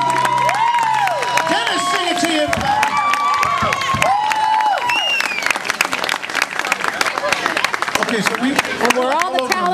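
A crowd claps rapidly.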